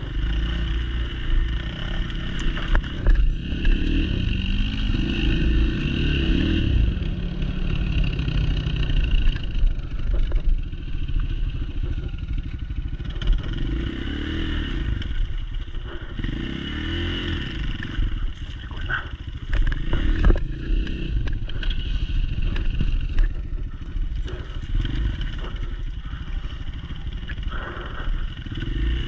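A dirt bike engine rumbles up close and revs up and down.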